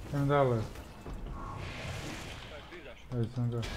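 A magic blast whooshes and crackles.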